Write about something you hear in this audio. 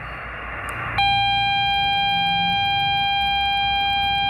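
A radio receiver gives off a steady high beep.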